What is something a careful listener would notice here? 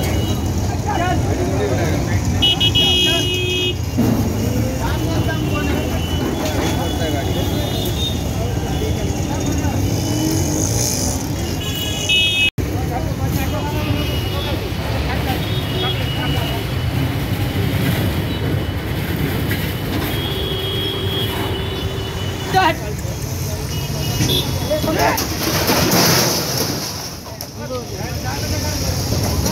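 A crowd of men talks and shouts nearby outdoors.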